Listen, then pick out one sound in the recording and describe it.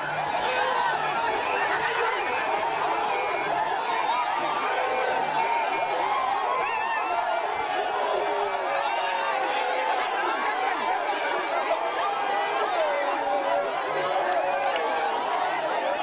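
A large crowd sings and chants together in rhythm.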